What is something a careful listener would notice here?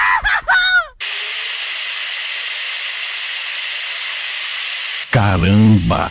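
A blowtorch roars steadily.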